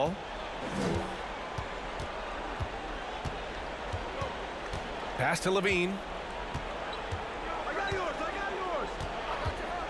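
A basketball bounces on a hardwood floor in a steady dribble.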